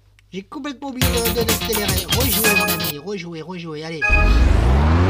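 A video game menu plays a short burst of electronic music.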